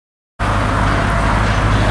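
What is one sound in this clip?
A car drives past on a street.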